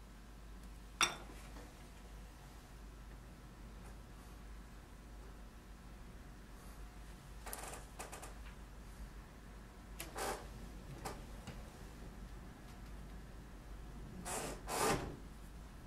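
Tools clink and clatter on a wooden table.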